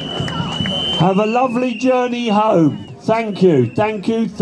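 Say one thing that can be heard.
An elderly man speaks loudly with animation through a microphone and loudspeaker.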